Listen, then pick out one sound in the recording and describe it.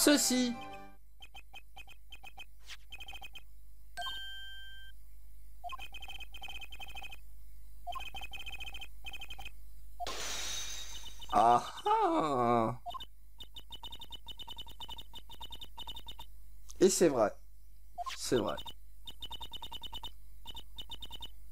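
Short electronic blips tick rapidly in bursts.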